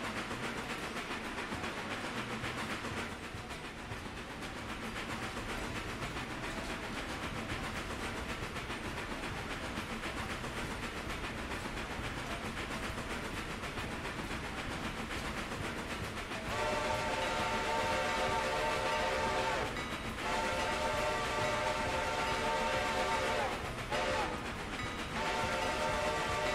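A steam locomotive chugs steadily along the rails.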